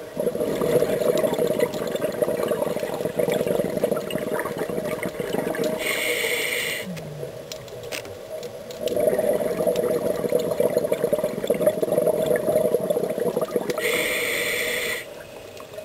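Muffled water noise rumbles steadily underwater.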